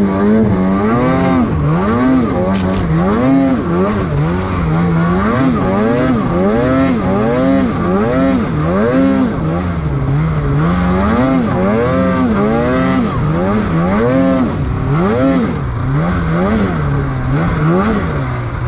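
A snowmobile engine revs up and down repeatedly, close by.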